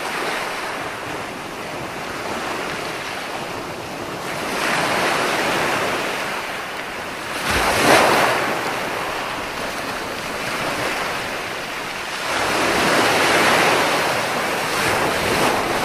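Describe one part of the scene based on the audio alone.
Ocean waves break and wash onto a beach in rolling surges.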